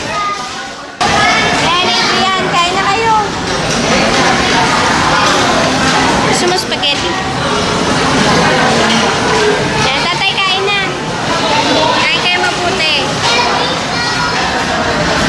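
Children talk and chatter close by.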